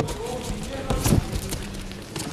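A judoka is thrown onto a mat with a thud.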